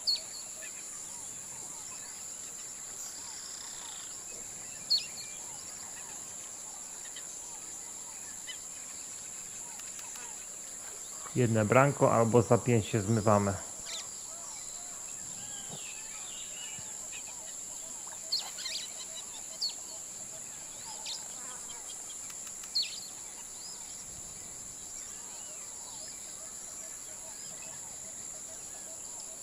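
Water laps softly against a shore.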